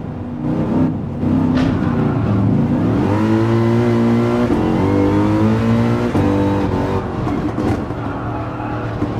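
A race car engine roars loudly, rising and falling in pitch as it speeds up.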